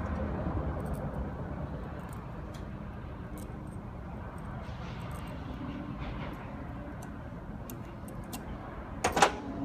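Metal pliers click softly.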